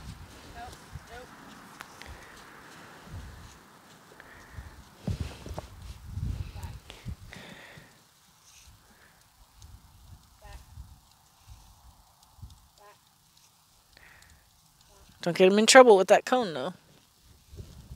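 A horse's hooves thud softly on soft ground.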